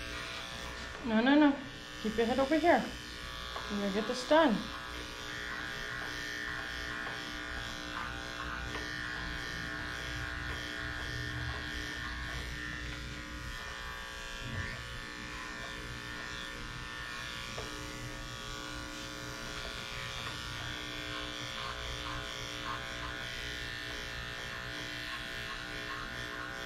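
Electric hair clippers buzz steadily up close.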